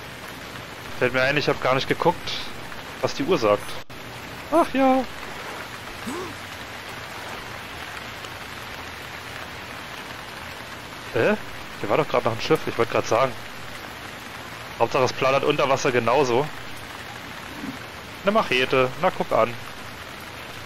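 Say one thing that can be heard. A young man talks with animation into a headset microphone, close and clear.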